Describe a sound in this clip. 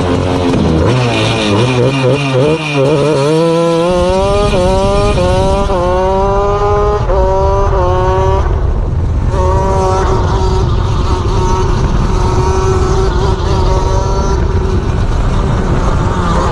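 A small kart engine revs up and down loudly close by.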